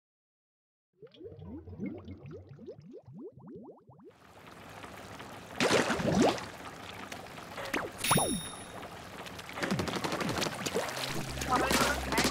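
Cartoonish game sounds swoosh and splat quickly.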